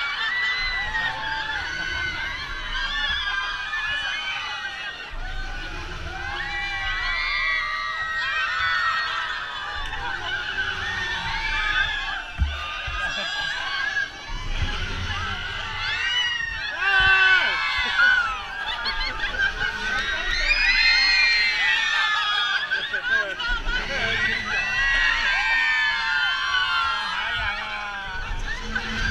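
Wind rushes past on a fast ride.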